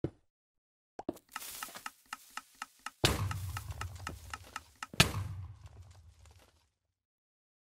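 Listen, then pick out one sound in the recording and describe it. A pickaxe chips rapidly at stone.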